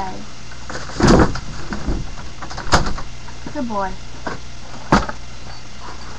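A cardboard box rustles and taps in a boy's hands.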